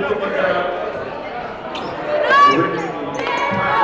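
Young women cheerleaders shout a chant together.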